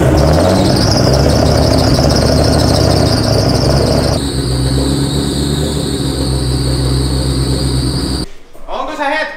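A car engine runs loudly and steadily up close.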